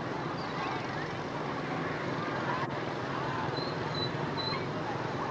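Motorbike engines buzz steadily as traffic passes on a busy street.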